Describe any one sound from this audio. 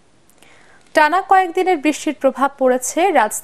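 A woman speaks clearly and calmly into a microphone.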